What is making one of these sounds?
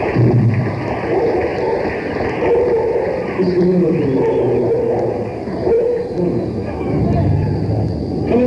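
A rock band plays loudly with electric guitars.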